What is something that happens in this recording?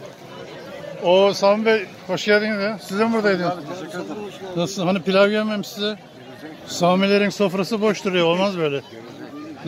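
A man chants loudly and melodically close by.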